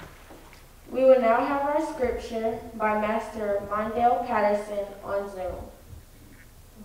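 A young woman sings into a microphone in an echoing hall.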